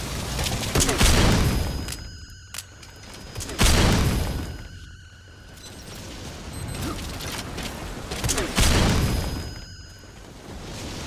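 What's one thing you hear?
Loud explosions boom and rumble away.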